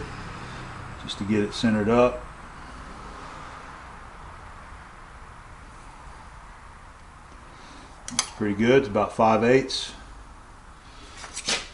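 Metal parts click and scrape together.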